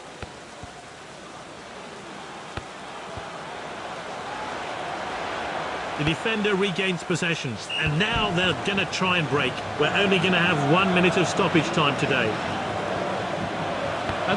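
A stadium crowd roars steadily, growing louder.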